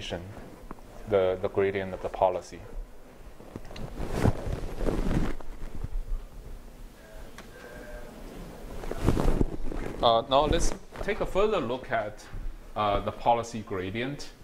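A man lectures calmly in a room with a slight echo.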